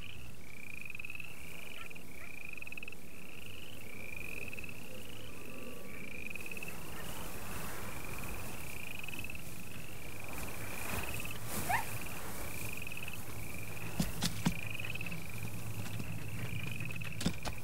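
An animal's paws rustle through tall grass.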